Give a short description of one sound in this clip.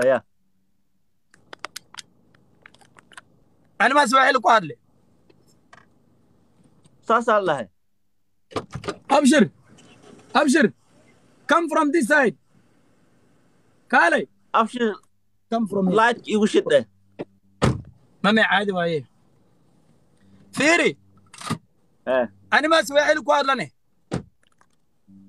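A man speaks with animation through a phone microphone.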